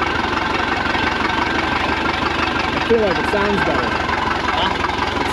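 An outboard boat motor runs steadily at idle.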